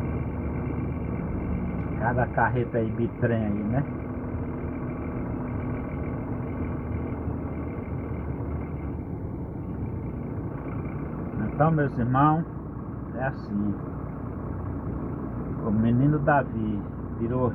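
A vehicle engine hums steadily at low speed.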